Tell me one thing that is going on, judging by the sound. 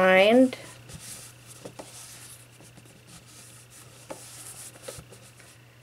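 Hands turn a cardboard box, with soft taps and rustles.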